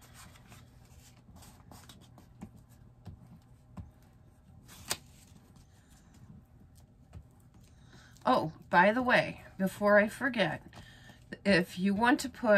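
A glue stick rubs across paper.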